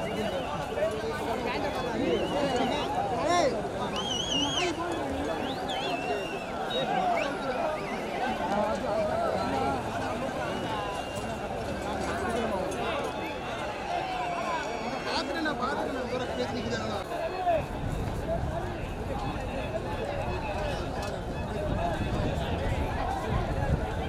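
A large outdoor crowd of men shouts and cheers loudly.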